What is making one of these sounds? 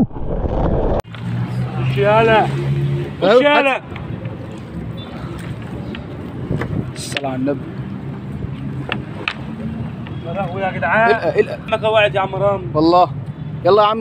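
Water drips and splashes from a fishing net.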